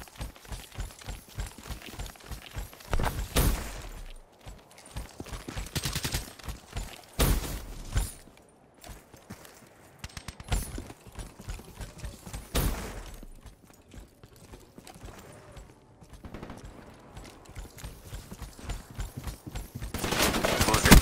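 Footsteps crunch quickly over snow and hard ground.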